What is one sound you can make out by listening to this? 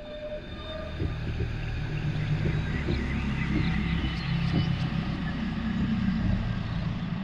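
Water bubbles and churns close by.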